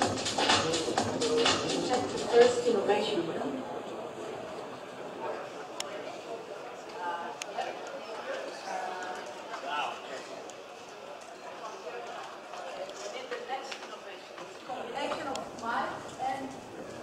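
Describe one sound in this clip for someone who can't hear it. A man speaks with animation through a headset microphone in a large echoing hall.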